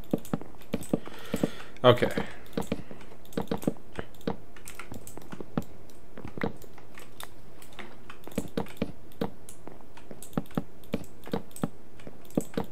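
Footsteps knock on wooden boards.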